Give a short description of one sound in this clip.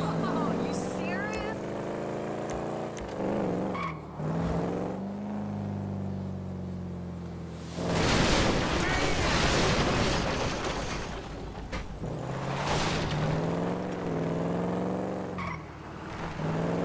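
A car engine hums and revs up and down.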